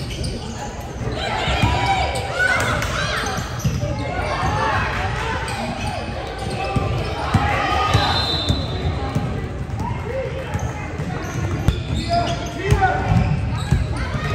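Young women talk and call out with animation in a large echoing hall.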